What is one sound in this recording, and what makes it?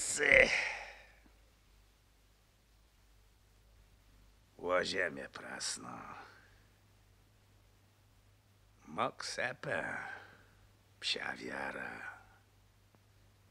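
A man speaks calmly and warmly, close by, in short phrases.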